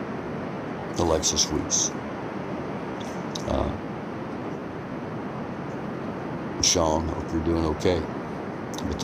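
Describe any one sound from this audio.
A man speaks in short bursts close to the microphone.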